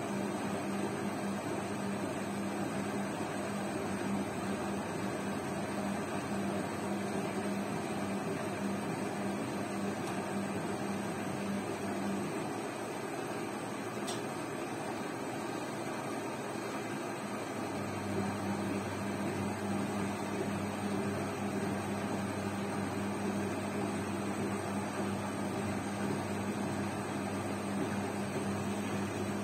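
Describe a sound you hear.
A front-loading washing machine hums as its drum turns.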